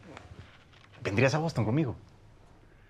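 A young woman asks a question in a calm, warm voice close by.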